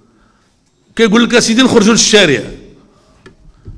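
An elderly man speaks forcefully into a microphone through loudspeakers, with echoing reverberation.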